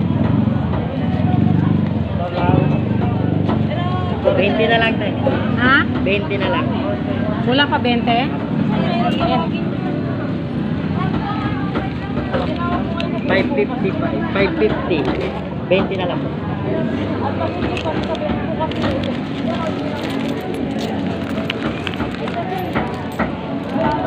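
Paper banknotes rustle as they are counted close by.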